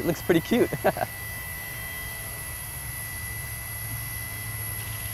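A model helicopter's rotor whirs and its motor whines steadily overhead, outdoors.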